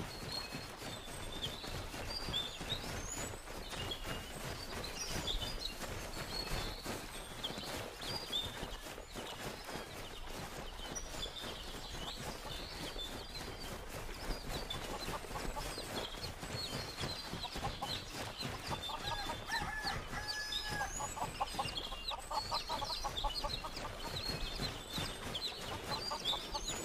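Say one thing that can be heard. Quick footsteps run through tall grass.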